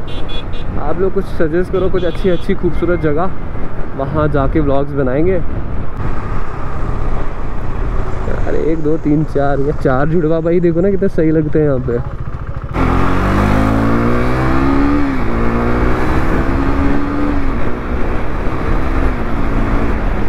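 A motorcycle engine revs up and down close by, climbing in pitch through the gears.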